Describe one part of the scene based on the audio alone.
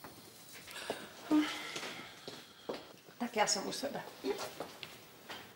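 A woman speaks briefly from across the room.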